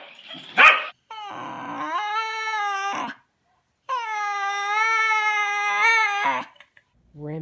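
A dog howls and whines in long wavering notes.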